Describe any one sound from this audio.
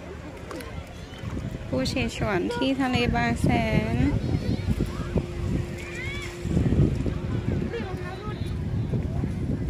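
Feet splash in shallow water.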